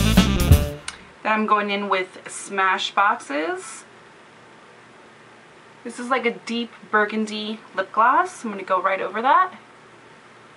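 A young woman speaks brightly, close to the microphone.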